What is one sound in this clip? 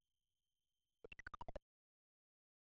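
A quick falling electronic tone plays when a life is lost.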